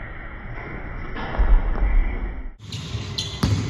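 A basketball rattles through a metal hoop.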